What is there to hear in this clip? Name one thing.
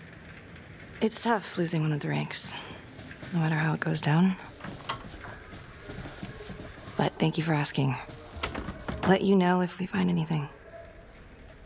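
A second woman answers quietly.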